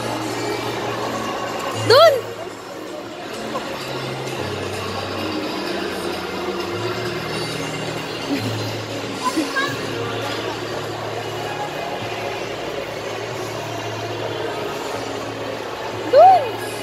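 A coin-operated animal ride plays a simple electronic tune.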